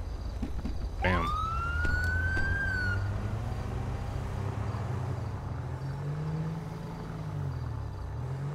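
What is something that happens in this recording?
A car engine hums and revs as the car pulls away and drives on.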